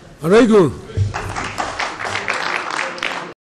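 A crowd of men murmurs and calls out.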